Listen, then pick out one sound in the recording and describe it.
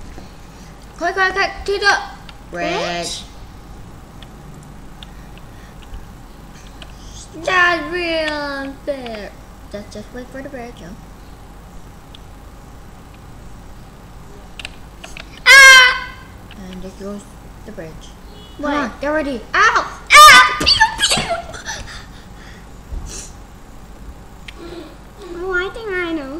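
A young boy talks and shouts excitedly in short bursts, close to a microphone.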